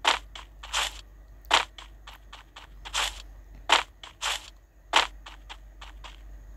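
Footsteps thud quickly across grass.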